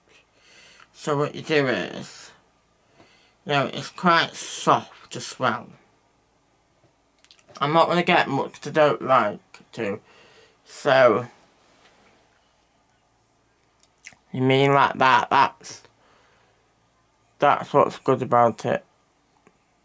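A young man talks calmly and close by, in short bursts.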